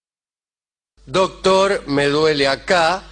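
A man speaks into a microphone close by.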